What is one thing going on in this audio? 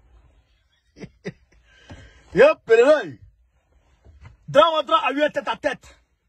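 A young man speaks with animation close to the microphone.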